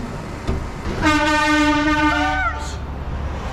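A passing lorry sounds its horn loudly.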